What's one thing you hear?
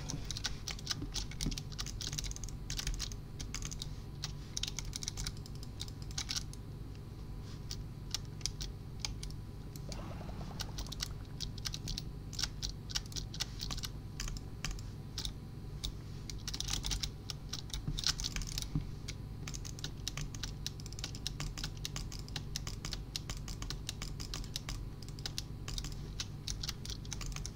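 Blocks are placed with rapid soft clicks.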